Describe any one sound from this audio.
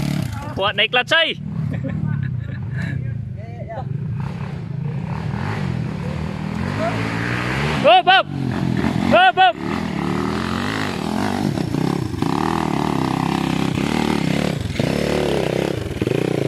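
A dirt bike engine rumbles steadily close by.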